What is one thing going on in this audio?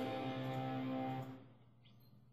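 A short, cheerful video game tune plays through a television speaker.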